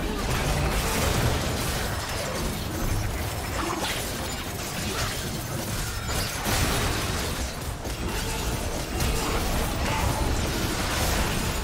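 Fantasy spells crackle and blast as game fighters battle.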